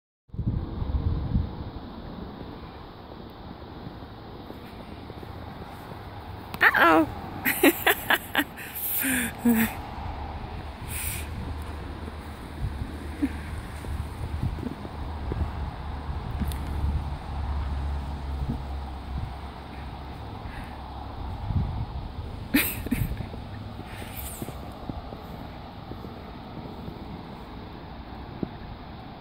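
Dogs scuffle in the snow.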